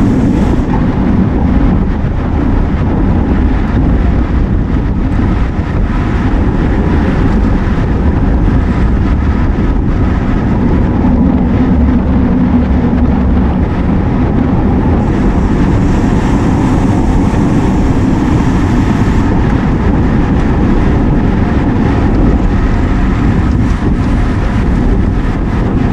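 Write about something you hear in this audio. Bicycle tyres hum on pavement.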